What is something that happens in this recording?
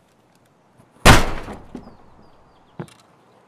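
A heavy metal door opens with a loud thud.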